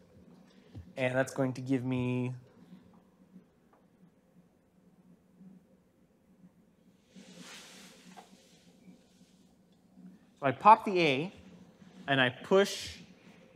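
A man speaks calmly, lecturing.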